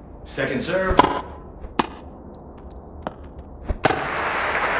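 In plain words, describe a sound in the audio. A tennis racket strikes a ball with sharp thwacks.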